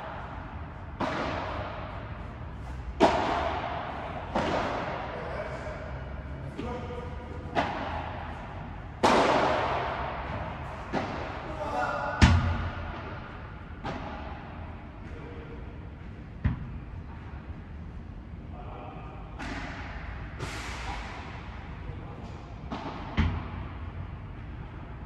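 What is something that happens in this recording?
A ball bounces on a court.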